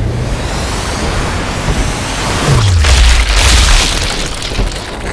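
A bullet whooshes slowly through the air with a deep, drawn-out rush.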